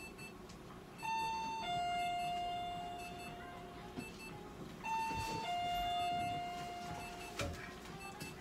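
A cockatiel whistles a clear two-note tune close by.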